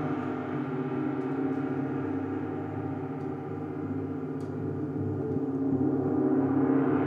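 Large gongs hum and shimmer with a deep, steady ringing tone.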